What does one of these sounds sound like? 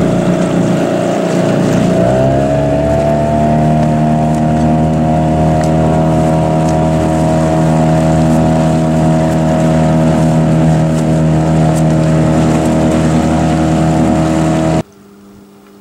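A boat's outboard motor drones steadily, its pitch rising as it speeds up.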